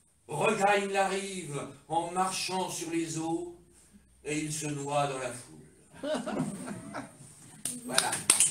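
A middle-aged man recites slowly and expressively.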